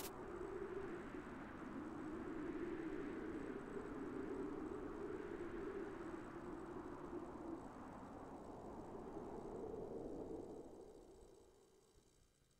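Soft game music plays and fades out.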